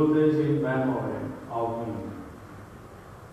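A man chants through a microphone in a large echoing hall.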